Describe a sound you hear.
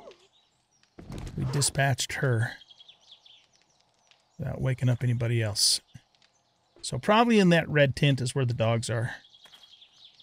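An elderly man talks calmly and casually into a close microphone.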